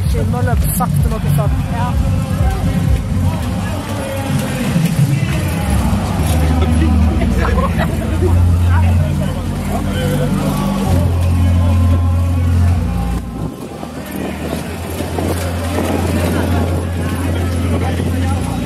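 A crowd of adults chatters and calls out nearby.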